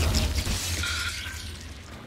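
Crows flap their wings in a flurry.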